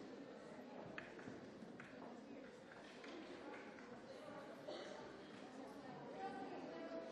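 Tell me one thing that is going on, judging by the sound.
Footsteps shuffle as people move about.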